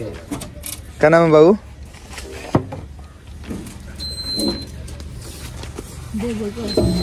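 A young man speaks loudly nearby.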